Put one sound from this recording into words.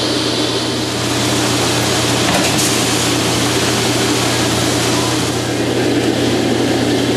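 Grain pours in a steady rushing stream onto a heap.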